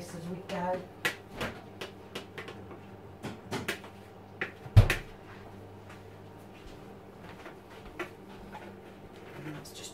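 Plates clatter and clink as they are dried and stacked.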